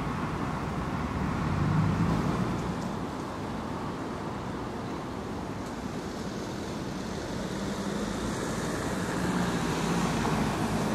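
Traffic rumbles steadily in the distance outdoors.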